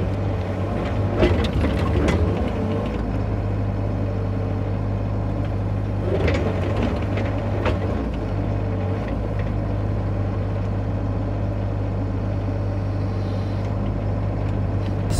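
A small excavator's diesel engine hums steadily nearby.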